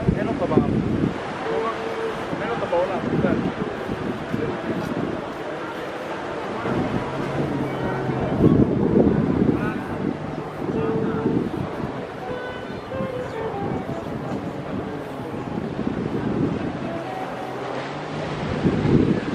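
Wind buffets the microphone outdoors.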